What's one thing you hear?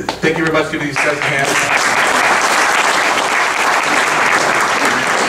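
People applaud loudly.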